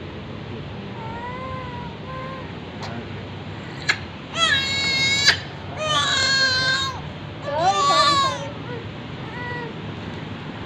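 A baby whimpers and then cries loudly close by.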